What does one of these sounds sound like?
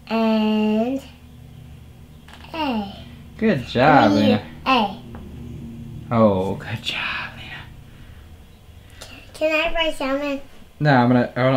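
A small child speaks in a high voice, close by.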